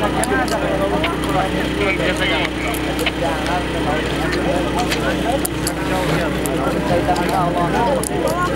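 A large crowd of men shouts and calls out across open ground outdoors.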